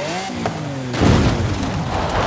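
A car lands hard with a heavy thud.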